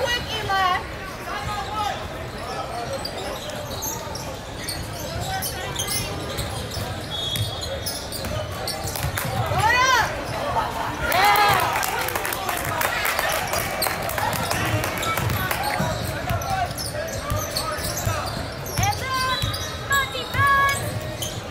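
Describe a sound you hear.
Spectators murmur and chatter throughout a large echoing gym.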